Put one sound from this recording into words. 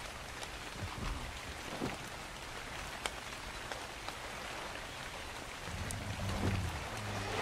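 Soft interface clicks sound several times.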